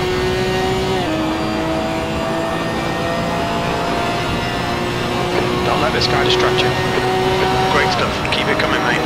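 A racing car shifts up a gear with a quick drop in engine pitch.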